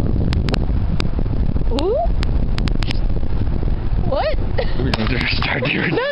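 A young woman laughs close to the microphone.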